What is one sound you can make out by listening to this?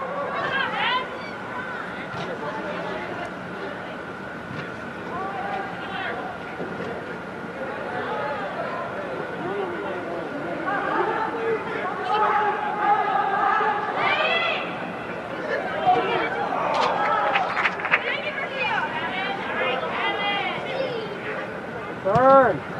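Young girls shout and call out to each other across a large echoing indoor hall.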